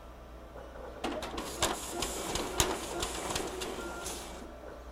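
A copier whirs and clatters as it feeds paper out.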